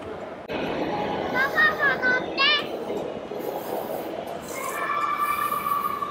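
A young child talks and laughs nearby.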